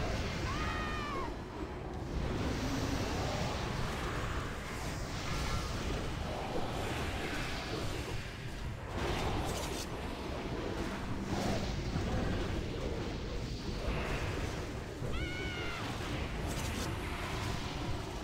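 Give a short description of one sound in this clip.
Weapons clash and thud in a fantasy battle.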